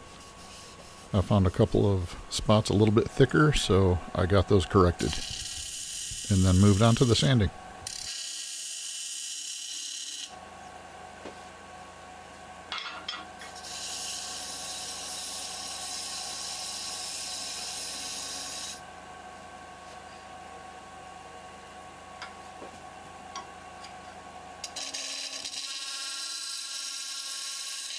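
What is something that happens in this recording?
A cutting tool scrapes against spinning wood.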